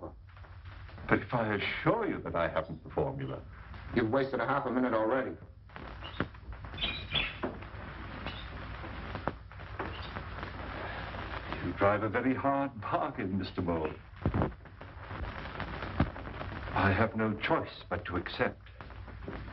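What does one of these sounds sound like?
Men talk in turns, calmly and seriously, close by.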